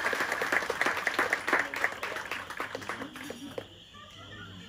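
A crowd of guests claps along nearby.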